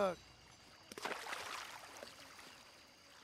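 A fish splashes into shallow water.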